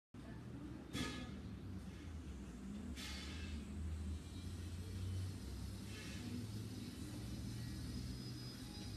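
A middle-aged man speaks calmly and close to a microphone, heard as if over an online call.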